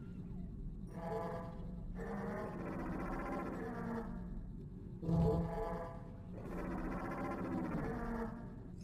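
An electronic panel plays short musical tones.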